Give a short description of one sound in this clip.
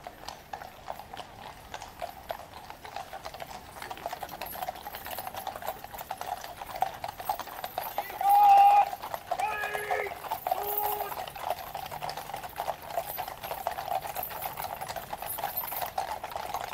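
Horses' hooves clop steadily on a paved road.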